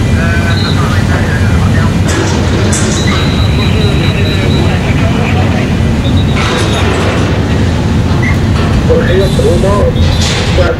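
A large ship's engine rumbles low and steady.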